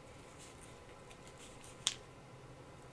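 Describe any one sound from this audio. A piece of card rustles and taps down on a table.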